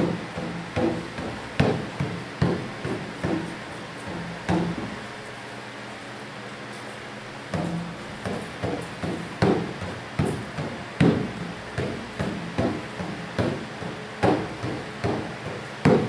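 A woman talks casually in a room with some echo.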